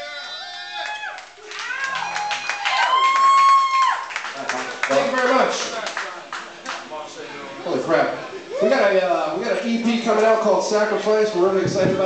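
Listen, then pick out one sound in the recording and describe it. Electric guitars play loudly in a band.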